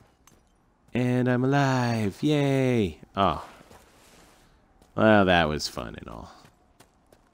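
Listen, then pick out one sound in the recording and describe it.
A man speaks calmly and solemnly.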